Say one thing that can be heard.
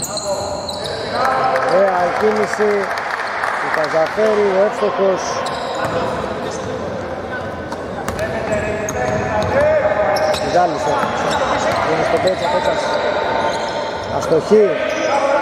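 A basketball bounces on the floor.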